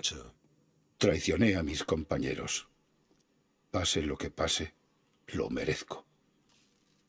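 A middle-aged man answers calmly.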